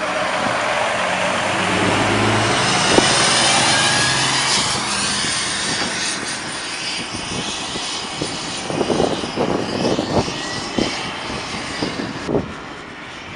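A large truck engine rumbles as it drives slowly past.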